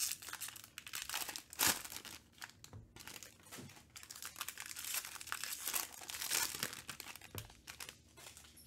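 A foil card pack crinkles and tears as hands rip it open.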